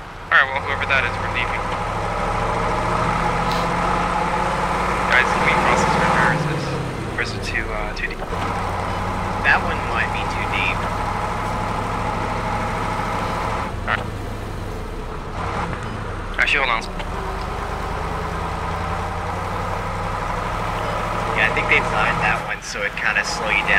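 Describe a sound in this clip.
A vehicle engine rumbles steadily while driving.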